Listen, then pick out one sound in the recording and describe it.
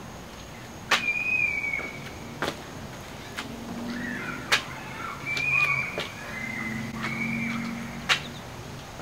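Feet land with soft thuds on a mat outdoors.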